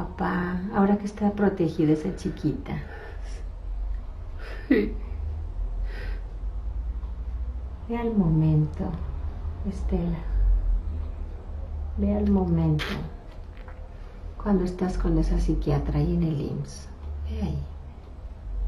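A woman speaks close by, in short phrases with pauses.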